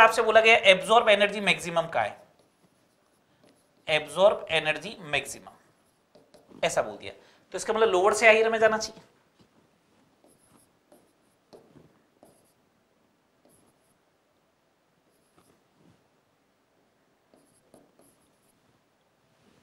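A marker squeaks and taps faintly on a whiteboard.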